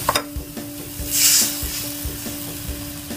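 Water pours into a hot pan and sizzles.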